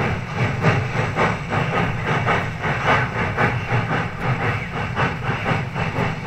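A steam locomotive chuffs in rapid, rhythmic bursts as it works hard.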